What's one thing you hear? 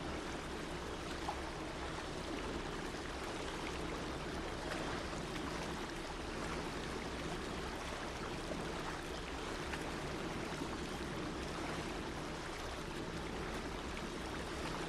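A small steam engine chugs steadily.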